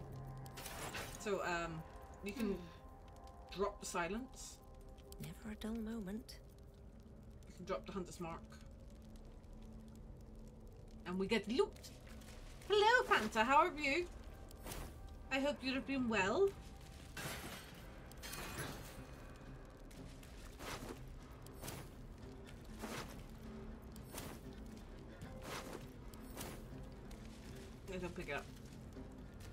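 A young woman talks with animation into a close microphone, in bursts with pauses.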